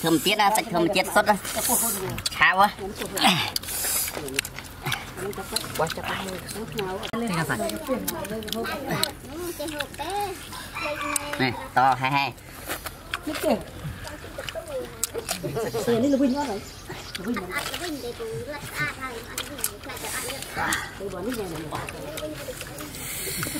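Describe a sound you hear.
A man chews and smacks his lips noisily.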